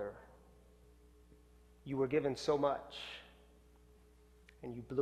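A man speaks calmly to an audience through a microphone, with pauses.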